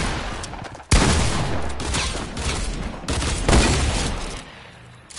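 A shotgun fires several loud blasts at close range.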